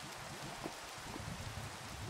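Lava bubbles and pops nearby.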